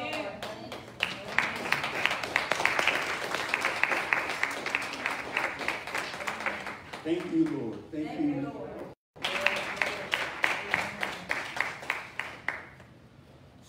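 A group of people clap their hands in a steady rhythm.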